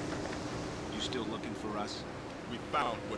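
A young man asks a question defiantly.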